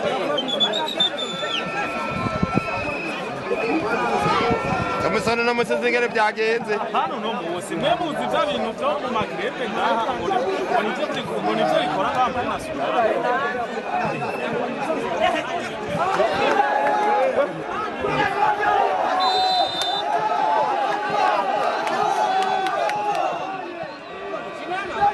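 A large crowd cheers and chatters loudly outdoors throughout.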